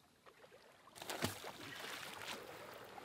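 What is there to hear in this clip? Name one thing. A fishing net splashes into the water.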